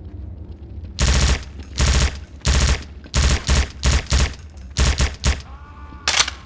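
Loud rifle shots fire in short, rapid bursts.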